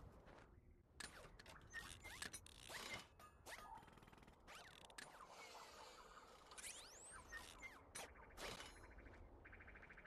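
Electronic game effects whoosh and clank.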